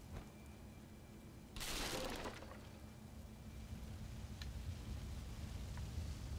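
A large fire roars and crackles.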